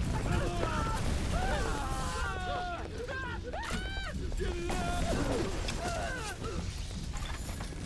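Flames burst and roar.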